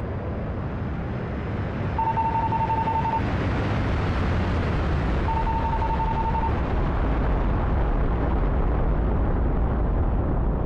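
A jet engine roars steadily overhead.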